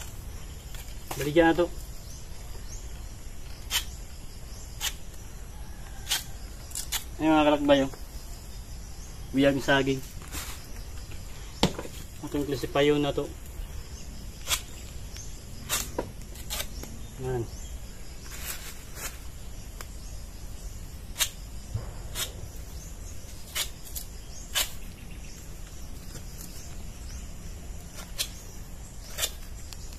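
Bananas snap and crack as they are pulled from a bunch.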